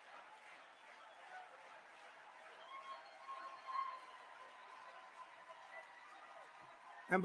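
A large crowd cheers and murmurs in a big echoing hall.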